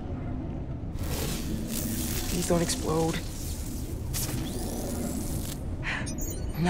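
An electric charge crackles and buzzes.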